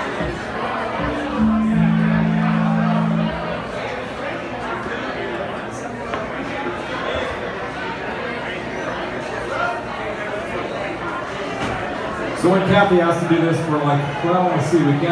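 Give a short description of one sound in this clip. An electric guitar plays loud, sustained notes through an amplifier.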